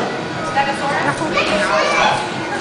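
A toddler babbles in a high voice close by.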